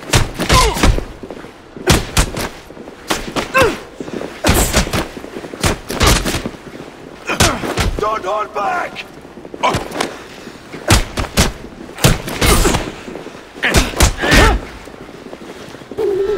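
Men grunt and groan with effort while fighting.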